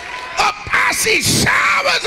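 A crowd cheers and shouts in praise.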